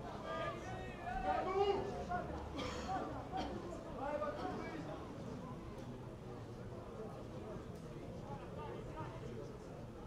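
Spectators murmur nearby.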